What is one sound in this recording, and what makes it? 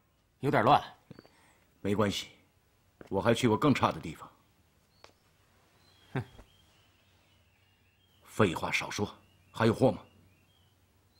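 A man speaks firmly close by.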